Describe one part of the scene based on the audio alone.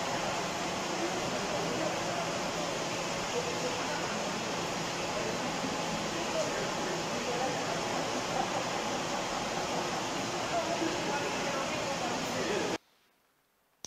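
Several people talk at once in a room with a murmur of voices.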